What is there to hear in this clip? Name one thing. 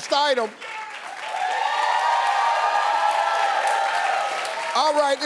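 A studio audience cheers and applauds.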